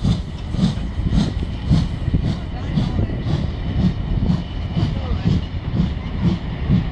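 A railway carriage rolls past, its wheels clacking rhythmically over rail joints.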